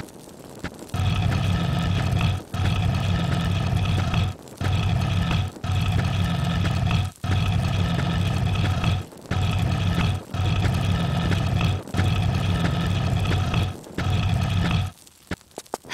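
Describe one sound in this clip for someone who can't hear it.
A heavy stone block scrapes along a stone floor in long grinding pushes.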